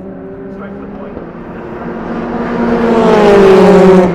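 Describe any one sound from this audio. A second racing car engine approaches from a distance and roars past.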